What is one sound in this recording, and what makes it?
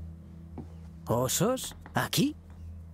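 A second young man answers with surprise, close by.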